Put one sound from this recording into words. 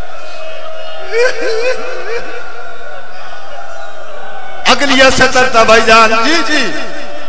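A man sings loudly and with feeling into a microphone, with echo.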